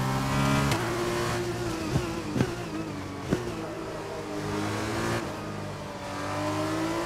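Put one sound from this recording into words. A racing car engine drops in pitch as it slows for a corner.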